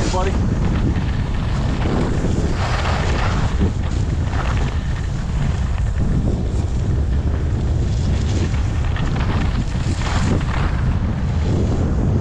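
Wind rushes loudly past, heard outdoors while moving fast.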